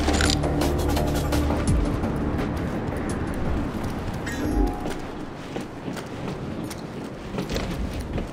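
Footsteps hurry across a hard floor and up stairs.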